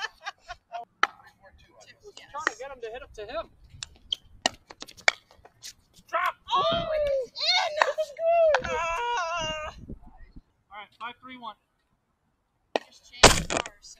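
A paddle strikes a ball with sharp pops.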